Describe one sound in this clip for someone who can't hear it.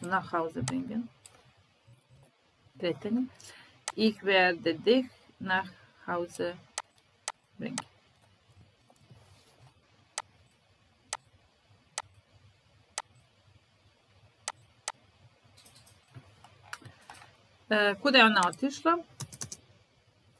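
A young woman speaks calmly and clearly into a microphone, with pauses.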